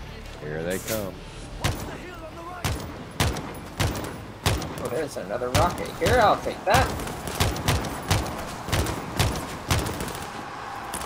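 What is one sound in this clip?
A rifle fires single loud shots, one after another.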